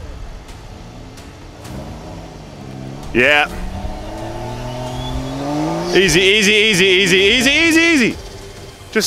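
A car engine revs and strains.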